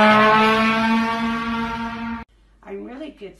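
A trombone plays a loud held note.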